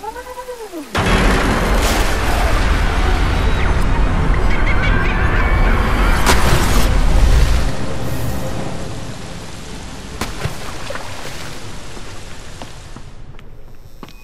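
A waterfall roars and splashes.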